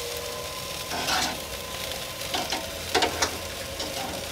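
Metal tongs clink against a grill grate.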